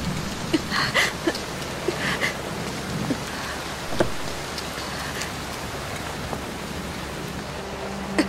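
Heavy rain falls steadily outdoors.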